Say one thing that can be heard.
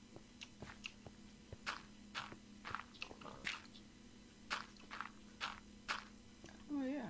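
Footsteps tread on dirt and stone.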